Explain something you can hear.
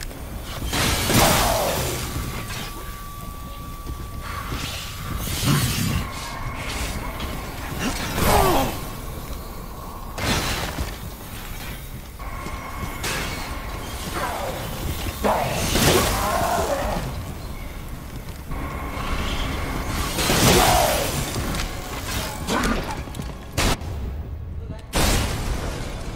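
Gunshots fire in loud single blasts, now and then.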